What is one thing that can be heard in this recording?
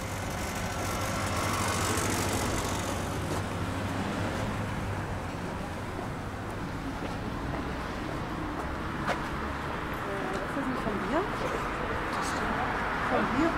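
City traffic hums steadily in the distance, outdoors.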